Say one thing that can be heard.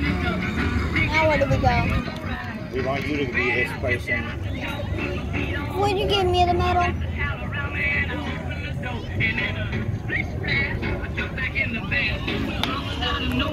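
A crowd of men, women and children chatters and talks all around, close by and outdoors.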